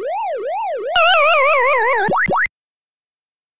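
An arcade game's electronic tune warbles and falls away.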